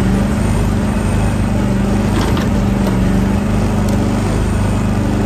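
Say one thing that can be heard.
A small excavator's diesel engine hums steadily close by.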